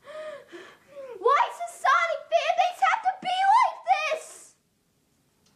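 A teenage boy sings loudly with animation.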